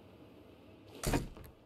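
A wooden door swings open with a creak.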